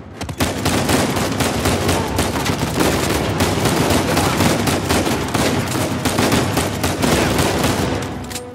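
Pistol shots fire rapidly, one after another, echoing in a large hard room.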